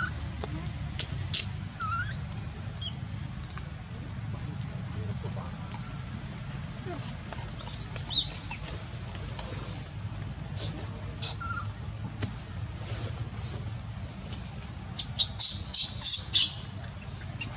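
A baby monkey squeals and cries shrilly in short bursts.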